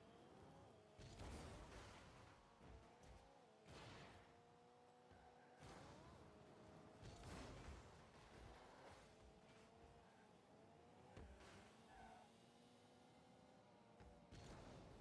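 A game car's engine hums and revs.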